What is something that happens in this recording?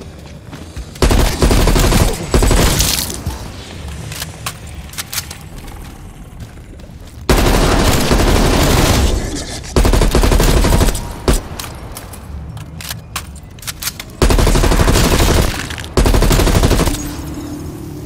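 Rapid gunfire blasts in loud bursts.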